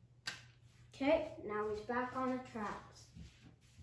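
A young boy speaks nearby.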